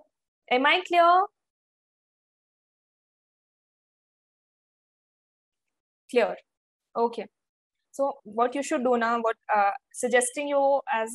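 A young woman speaks calmly into a close microphone.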